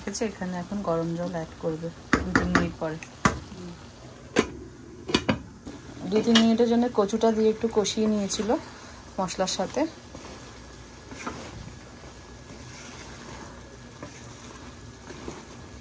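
A wooden spoon stirs and scrapes food in a pan.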